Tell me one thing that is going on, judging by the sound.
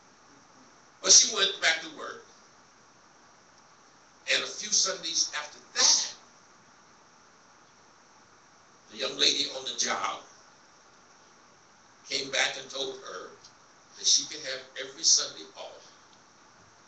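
A man preaches through a microphone in short, forceful phrases, pausing between them.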